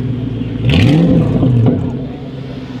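A sports car engine revs loudly and pops.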